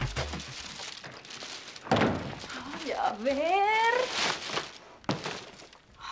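Paper shopping bags rustle.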